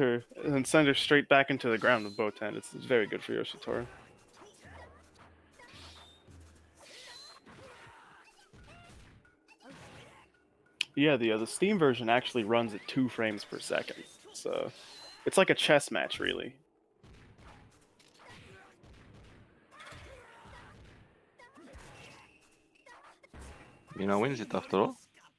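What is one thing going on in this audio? Swords slash and strike in quick, sharp hits.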